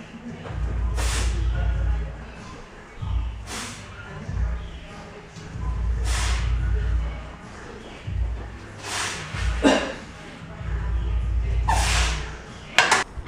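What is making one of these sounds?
A man breathes out hard with effort at each press.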